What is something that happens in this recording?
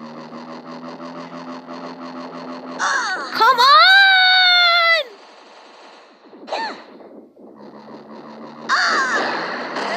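Laser shots zap repeatedly.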